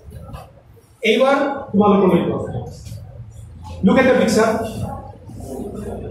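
A man speaks loudly and close by.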